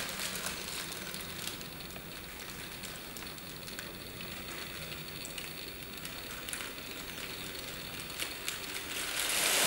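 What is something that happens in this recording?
Plastic sheeting rustles and crinkles as it is shaken.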